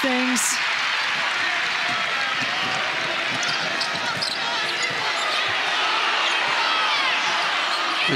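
A bouncing basketball thumps on the court.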